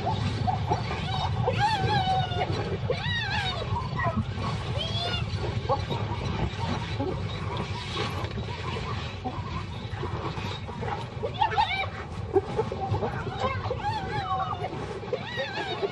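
Hyenas giggle and whoop with rising and falling cries.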